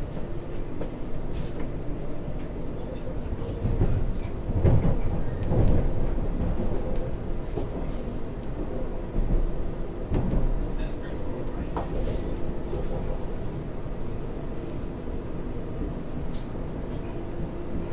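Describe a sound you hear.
A train rumbles steadily along with a low drone.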